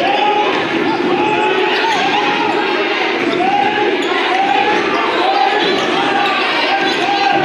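A small crowd murmurs in a large echoing gym.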